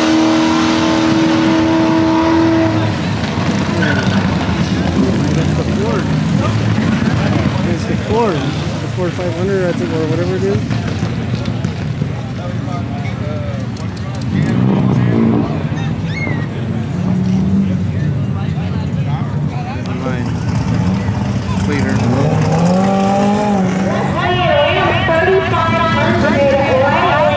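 A car engine idles with a deep, throaty rumble.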